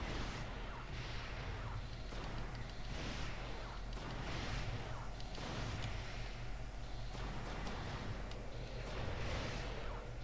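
Energy weapon blasts fire in bursts with a roaring rush.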